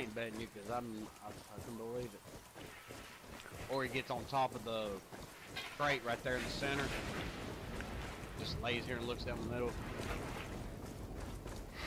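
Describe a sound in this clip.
Footsteps crunch through dry brush.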